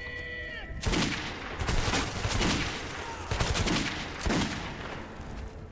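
A revolver fires loud booming shots that ring out.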